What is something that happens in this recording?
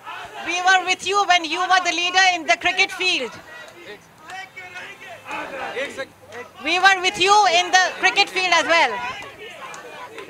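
A crowd chants loudly in unison.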